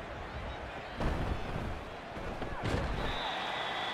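Football players collide with heavy thuds.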